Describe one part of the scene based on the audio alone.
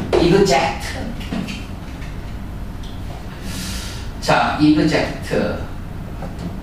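A man speaks clearly into a microphone in a lecturing tone, with pauses.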